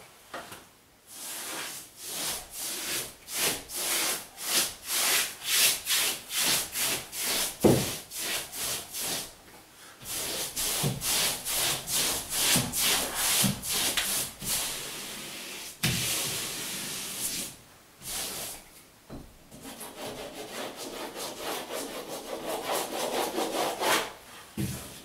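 A paperhanging brush swishes in strokes over wallpaper on a wall.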